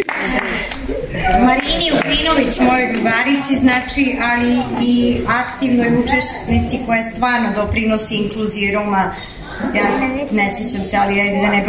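A young woman speaks calmly through a microphone in an echoing hall.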